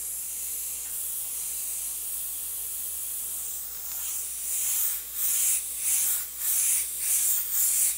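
An airbrush hisses steadily, then in short bursts.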